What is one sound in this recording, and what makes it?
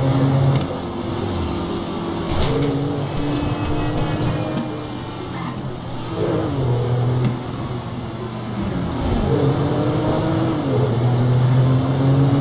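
A car engine hums and revs steadily as the car drives along a road.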